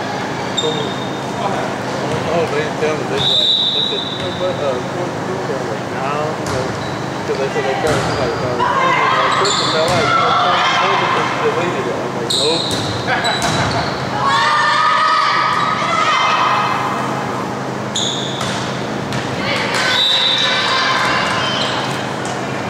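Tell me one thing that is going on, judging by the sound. Girls shout and cheer in an echoing gym.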